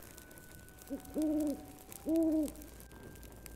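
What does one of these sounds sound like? An owl hoots twice.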